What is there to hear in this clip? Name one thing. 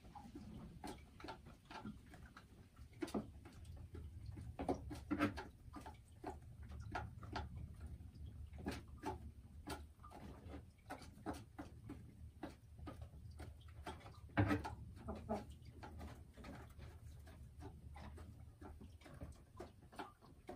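A hen clucks softly and repeatedly close by.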